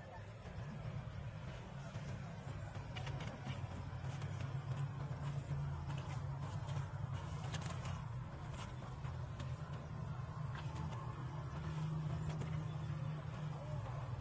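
Leaves rustle and crackle as a woman pushes through tall plants.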